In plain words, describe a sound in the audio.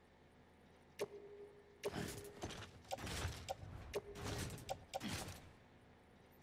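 Cargo and gear rustle and clatter as a load is shifted.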